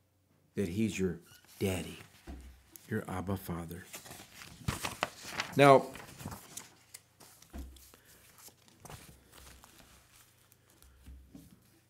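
Paper rustles as pages are handled.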